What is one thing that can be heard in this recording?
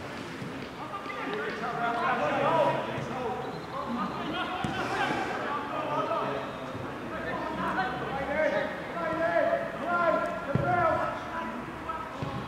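Men shout to each other across an open outdoor field.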